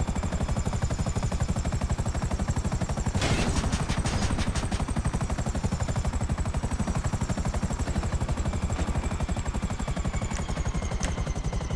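A helicopter's rotor blades thump rapidly and steadily close by.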